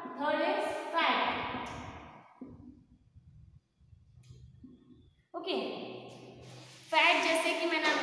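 A woman speaks clearly and calmly, close by.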